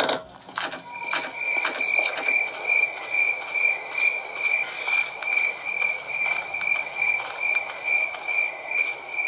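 Footsteps tread steadily outdoors.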